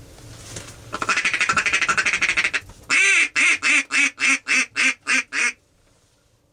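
A man blows a duck call in loud, rapid quacking bursts.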